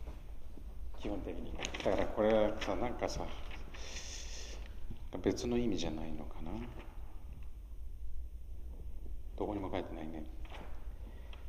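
A man speaks calmly in a large hall.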